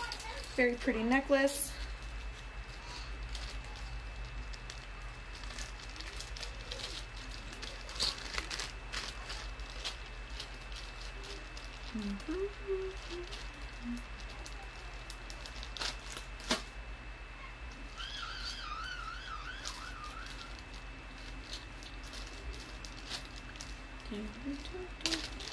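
Beads and chain jewelry clink and rattle.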